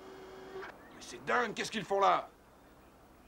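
A man speaks sternly.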